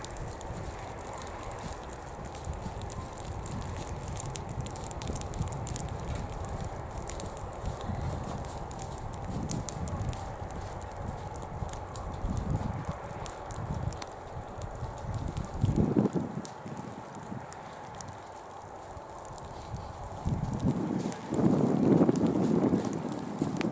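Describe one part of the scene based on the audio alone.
Burning grass crackles and pops softly.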